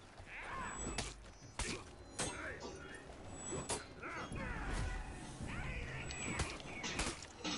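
Swords clash with sharp, ringing hits.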